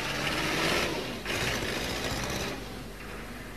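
A van engine hums as the van drives past.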